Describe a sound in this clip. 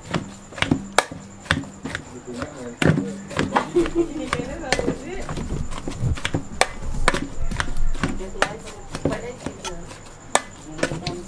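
A metal fork clinks against an aluminium pot while mashing boiled potato.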